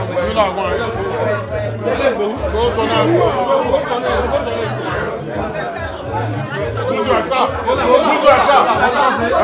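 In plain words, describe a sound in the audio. A crowd of adults chatters and talks loudly nearby.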